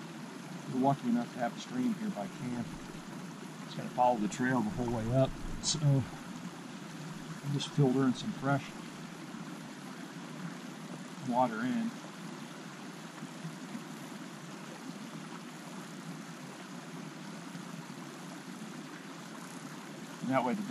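A small stream trickles and babbles over stones.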